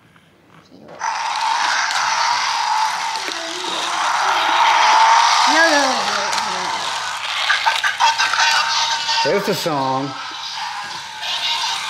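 A toy car's motor whirs as it races along a plastic track.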